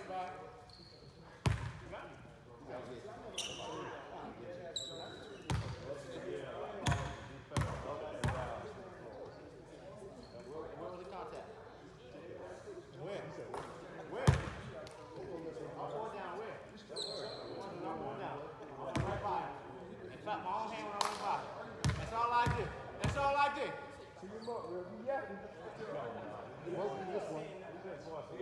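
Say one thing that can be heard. Young men talk across the court in a large echoing gym.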